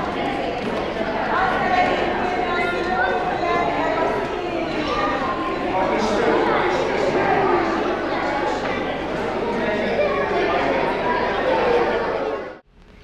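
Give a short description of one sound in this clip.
A crowd of people chatter and call out close by.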